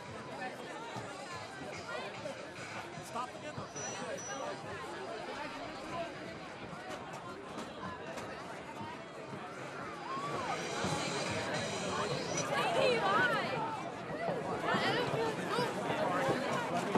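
A group of young women shout a chant in unison.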